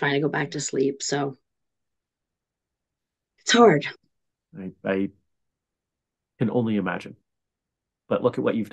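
A middle-aged woman speaks with animation over an online call, in short bursts with pauses.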